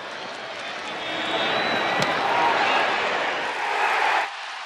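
A stadium crowd cheers loudly, swelling and then cutting off.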